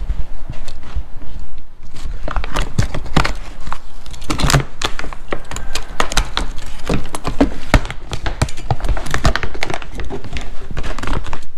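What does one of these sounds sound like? A utility knife slices through plastic wrap.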